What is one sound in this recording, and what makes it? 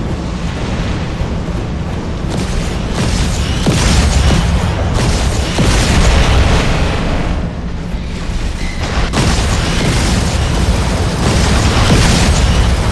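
Heavy mechanical footsteps of a giant robot thud and whir steadily.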